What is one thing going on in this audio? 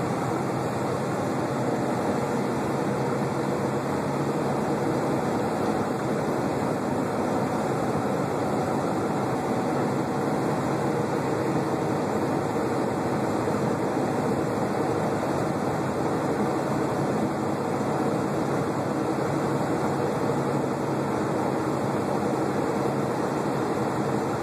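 A semi-truck's diesel engine drones steadily while cruising, heard from inside the cab.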